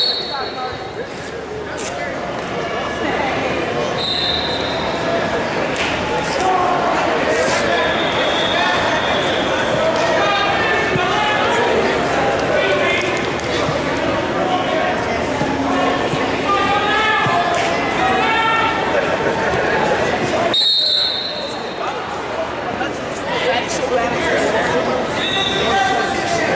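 A crowd chatters and calls out in a large echoing hall.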